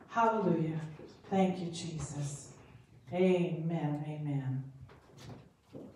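Women sing together through microphones in a large room.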